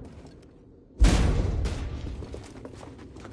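A person lands with a heavy thud after a fall.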